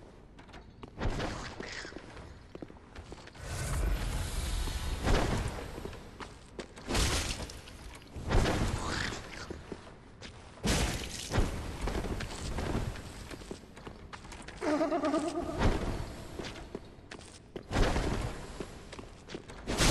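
Heavy sword blows land with loud, sharp crashes.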